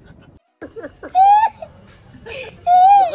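A young child wails and cries.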